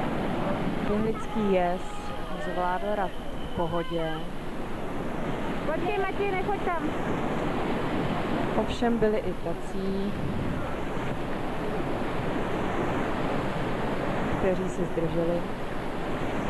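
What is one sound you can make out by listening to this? Men shout and call out over the roar of the water.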